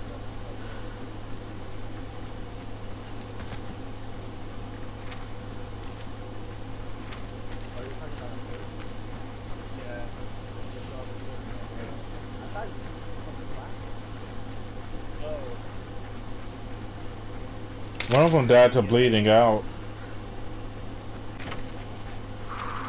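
Footsteps crunch through grass and dry leaves.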